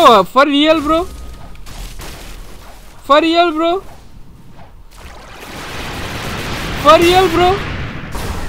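Magic blasts whoosh and crackle in quick bursts.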